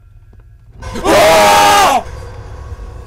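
A young man screams loudly into a microphone.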